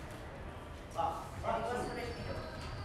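A young man shouts after a point.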